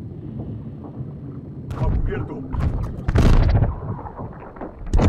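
A deep underwater rumble drones steadily.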